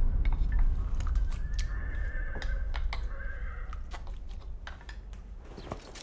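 Eating utensils click against dishes.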